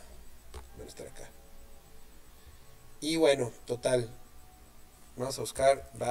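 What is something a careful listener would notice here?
A man speaks calmly and close to a microphone, in short bursts.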